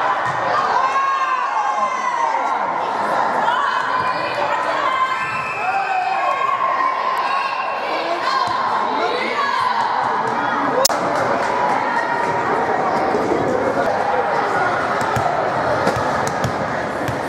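Teenage girls shout and cheer in a large echoing gym.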